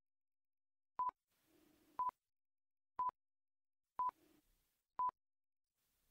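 A countdown timer beeps once each second.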